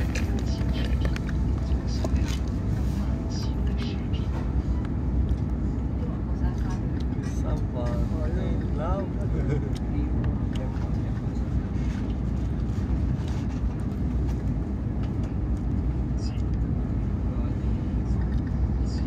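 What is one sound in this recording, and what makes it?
A train hums and rumbles steadily as it travels at speed.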